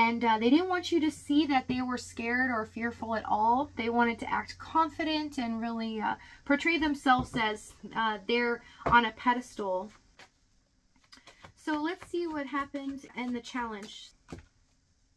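A woman talks with animation, close to a microphone.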